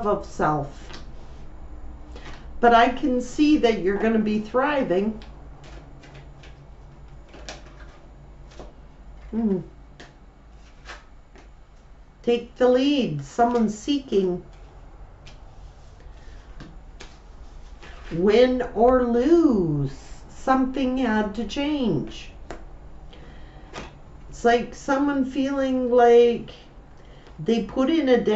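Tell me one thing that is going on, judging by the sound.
A middle-aged woman speaks calmly and close to a microphone, pausing often.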